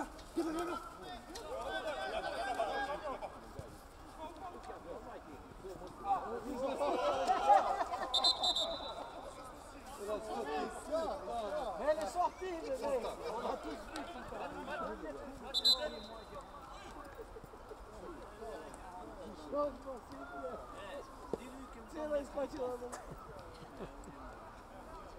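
Spectators near the pitch talk and call out outdoors.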